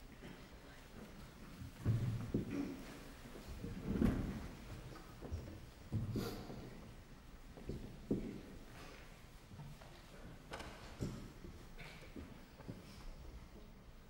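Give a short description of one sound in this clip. A string quartet plays softly in a hall.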